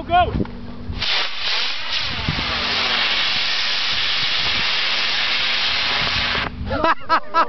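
A model plane's engine roars loudly overhead.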